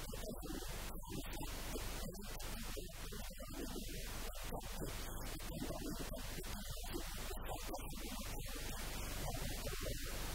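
An elderly man speaks steadily into a handheld microphone, close by.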